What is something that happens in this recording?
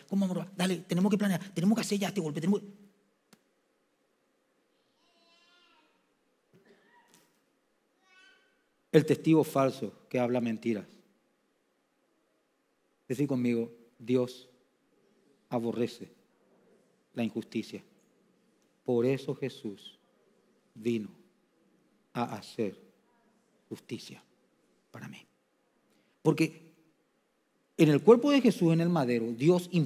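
A man speaks with emphasis into a microphone, in short bursts with long pauses.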